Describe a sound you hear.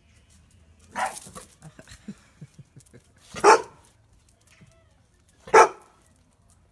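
A dog barks sharply nearby, a few times.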